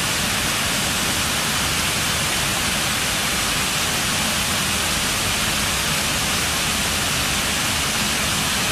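Water pours steadily and splashes onto stone.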